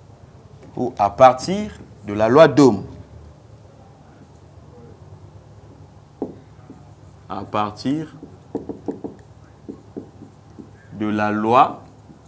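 A man speaks calmly nearby, with pauses.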